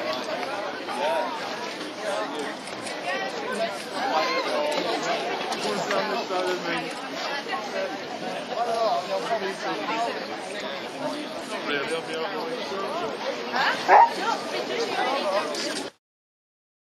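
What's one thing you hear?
A pack of hounds yelps and bays excitedly close by.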